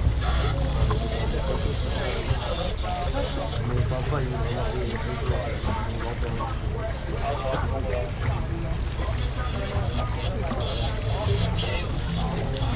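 Several adults talk and chat close by.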